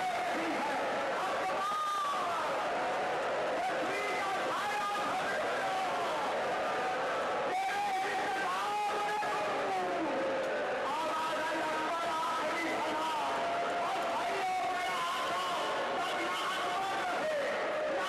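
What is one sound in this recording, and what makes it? A large crowd of men cries out and wails together.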